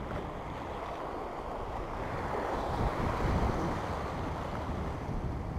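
Wind blows steadily, rumbling outdoors.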